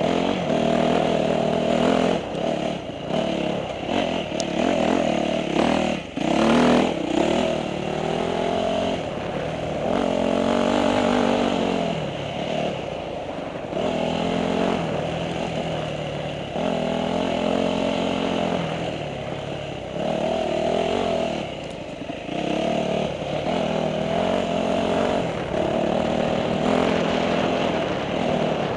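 A motorbike engine revs up and down, close by.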